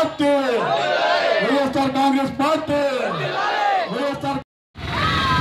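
A man speaks loudly and with animation through a microphone and loudspeaker outdoors.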